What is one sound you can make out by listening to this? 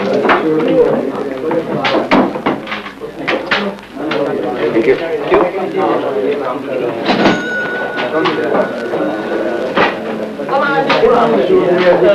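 Several men talk at once in a busy murmur.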